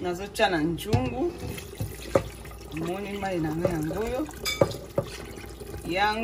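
Liquid pours and splashes into a pot.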